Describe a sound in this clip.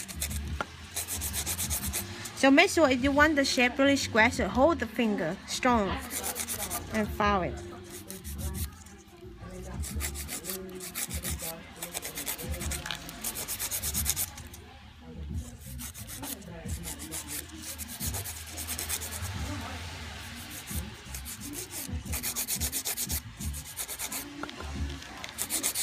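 A nail file rasps back and forth in quick, rhythmic strokes.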